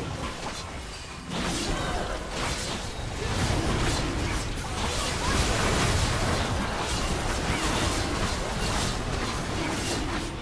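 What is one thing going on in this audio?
Game weapons clash and strike during a fight.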